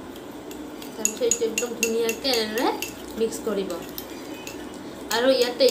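A spoon clinks against a glass.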